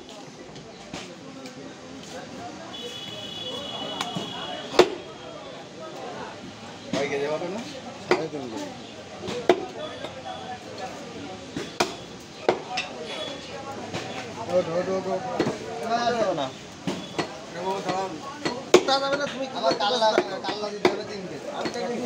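A heavy knife chops through meat onto a wooden block with sharp thuds.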